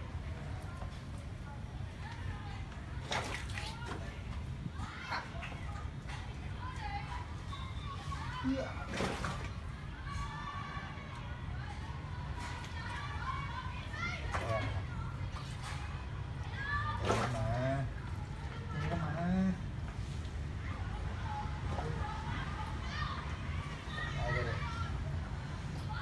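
Water splashes and sloshes as hands work in a tank.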